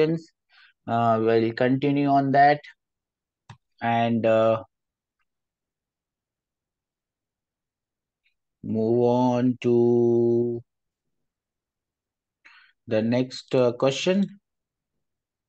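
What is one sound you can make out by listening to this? A young man speaks calmly and close to a microphone, with pauses.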